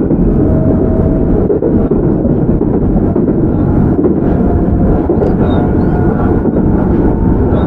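An electric train rumbles steadily along the tracks.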